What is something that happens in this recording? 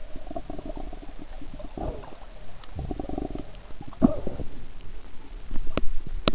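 Water gurgles and swirls, muffled as if heard underwater.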